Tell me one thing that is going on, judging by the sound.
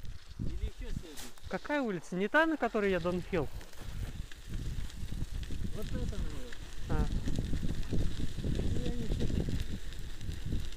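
Bicycle tyres crunch and rumble over packed snow.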